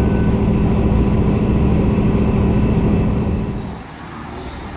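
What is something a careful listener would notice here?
A train rumbles along the tracks with a loud, steady roar.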